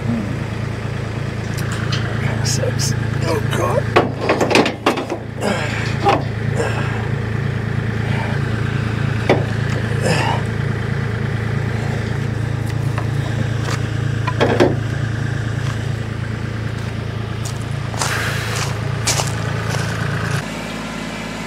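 An excavator engine idles with a low, steady rumble.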